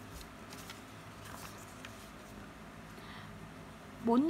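A sheet of paper rustles as it is moved.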